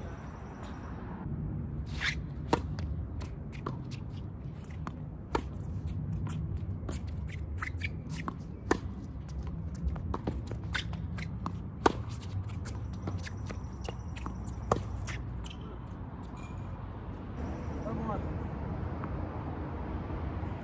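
Tennis shoes scuff and squeak on a hard court.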